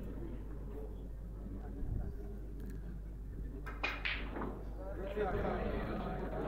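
Spectators murmur quietly nearby.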